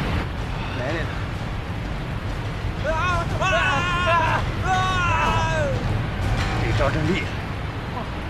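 Several people laugh and cheer.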